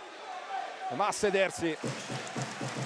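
A man shouts loudly nearby.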